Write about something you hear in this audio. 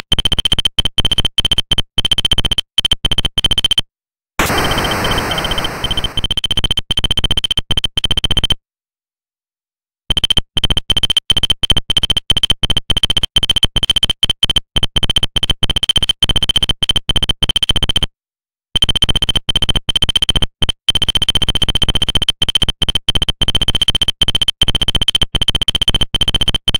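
A game's text blips rapidly, in a steady high-pitched chirping.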